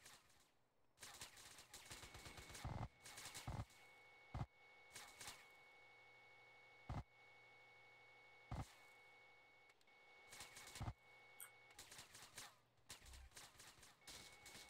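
A machine gun fires in short bursts.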